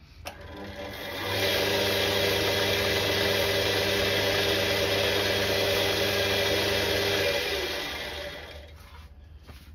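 A wood lathe spins with a steady whir, then winds down.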